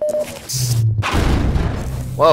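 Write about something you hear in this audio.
An explosion booms loudly nearby.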